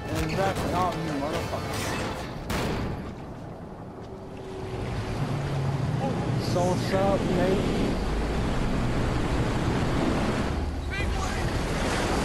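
A man calls out urgently.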